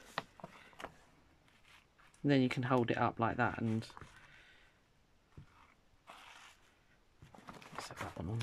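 A plastic sleeve crinkles and rustles close by.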